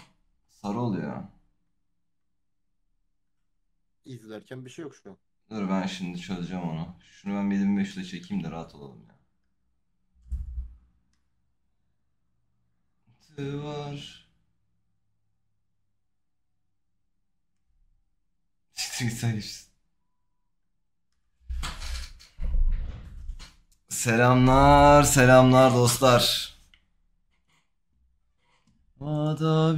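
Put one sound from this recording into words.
A young man talks in short bursts close to a microphone.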